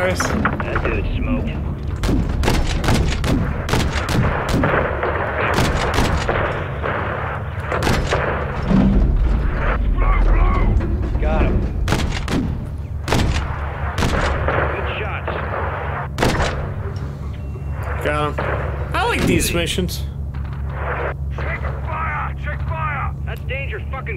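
Heavy cannon shells burst with loud booming explosions.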